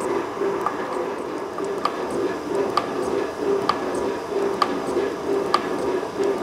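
A metalworking machine runs with a steady hum and a regular clack on each stroke.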